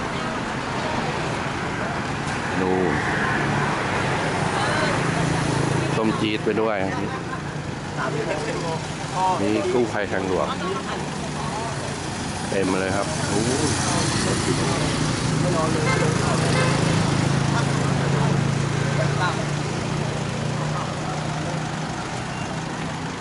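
Traffic hums along a road outdoors.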